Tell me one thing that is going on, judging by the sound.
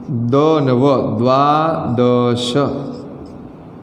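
A man speaks clearly and closely, explaining.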